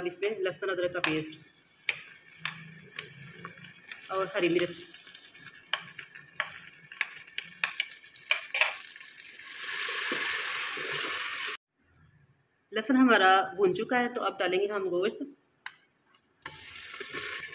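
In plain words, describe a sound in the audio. Oil sizzles in a pot.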